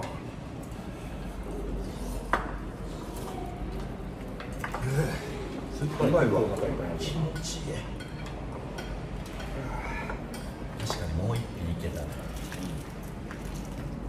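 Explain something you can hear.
Chopsticks and dishes clink on a table.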